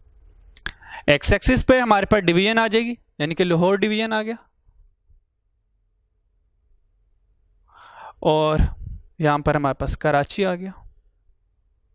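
A man lectures into a close microphone, speaking calmly.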